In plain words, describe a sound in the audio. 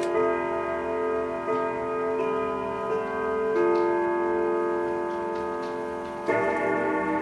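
A clock chimes a slow, ringing melody.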